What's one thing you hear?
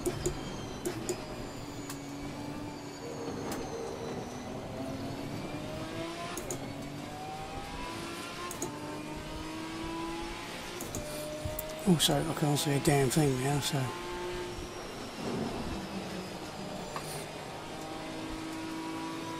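A racing car engine revs up and down, shifting gears.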